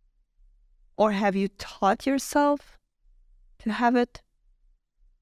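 A young woman speaks calmly into a close microphone.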